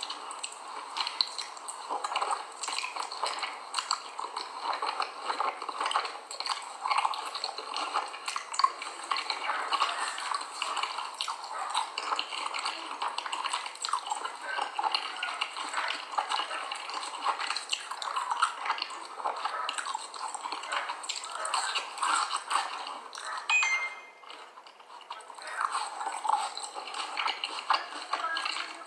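A young woman chews a mouthful of cornstarch close to a microphone, with a squeaky crunch.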